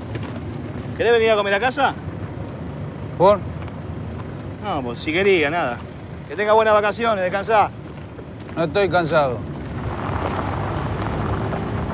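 A car engine idles.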